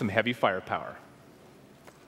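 A man speaks through a loudspeaker in a large hall.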